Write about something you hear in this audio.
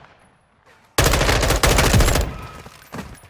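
A rifle fires a rapid, loud burst of shots.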